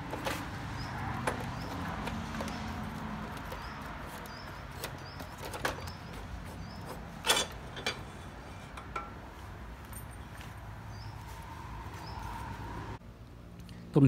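Metal parts click and clink.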